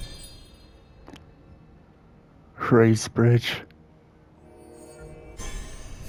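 A menu chime sounds and clicks as an option is selected.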